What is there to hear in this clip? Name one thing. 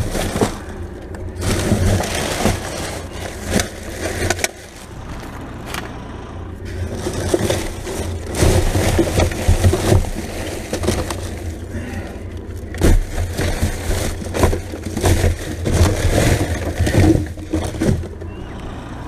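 Plastic bags rustle and crinkle as a bin is rummaged through.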